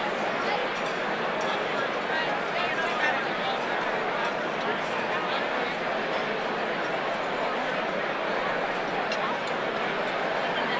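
A large crowd chatters steadily in a big echoing hall.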